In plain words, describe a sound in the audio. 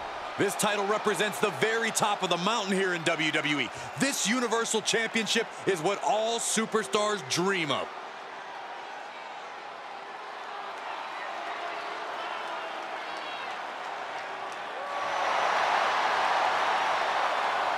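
A large crowd cheers in an arena, then swells louder.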